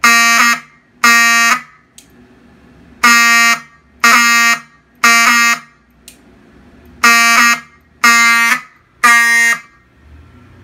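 A fire alarm horn blares loudly in short repeated blasts.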